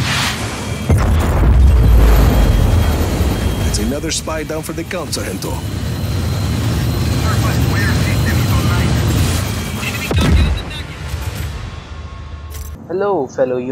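A jet engine roars loudly.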